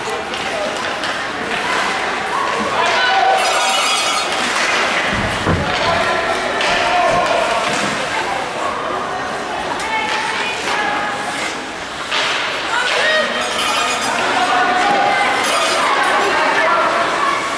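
Ice skates scrape across ice in an echoing indoor rink.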